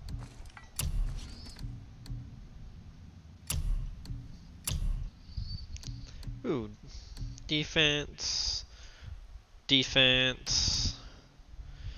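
Soft menu clicks tick as selections change.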